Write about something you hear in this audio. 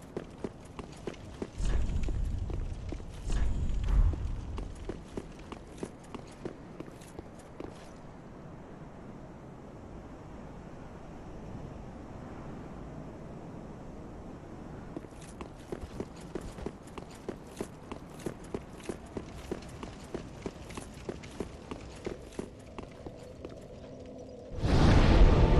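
Armoured footsteps clatter quickly on stone.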